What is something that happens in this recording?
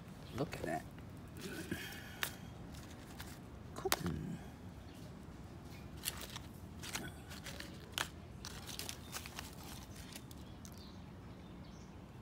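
Dry seed pods rustle and crackle as a hand sorts through them.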